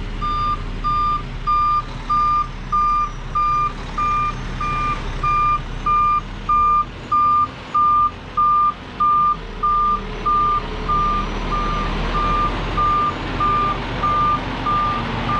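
A heavy diesel truck engine rumbles as the truck backs up slowly.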